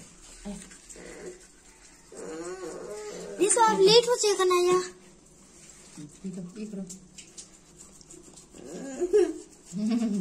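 A toothbrush scrubs against teeth.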